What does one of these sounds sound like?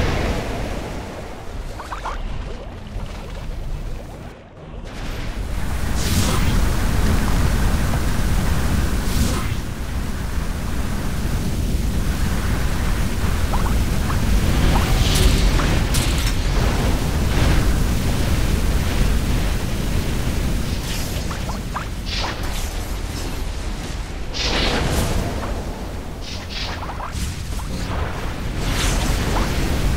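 Magic blasts and explosions crackle and boom in quick bursts.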